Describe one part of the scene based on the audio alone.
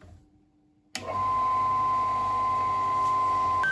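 A small electric motor switches on and whirs steadily at high speed.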